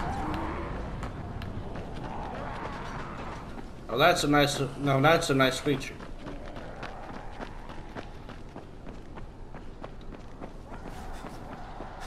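Footsteps patter quickly on stone steps.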